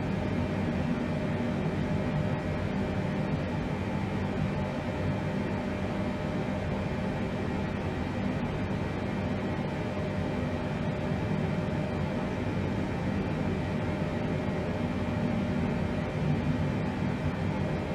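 Aircraft engines hum and drone steadily.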